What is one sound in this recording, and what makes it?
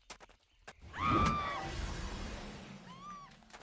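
A magical attack bursts with a crackling whoosh.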